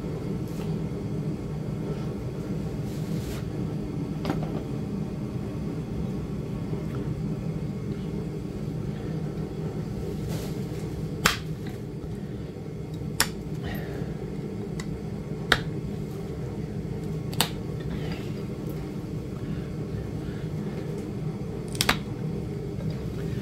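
A small rotary tool hums steadily.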